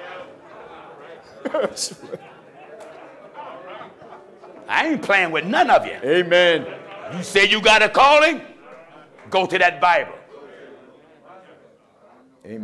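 A man preaches loudly and with animation through a microphone in a large echoing hall.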